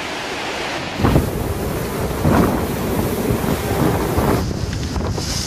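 A wave splashes loudly close by.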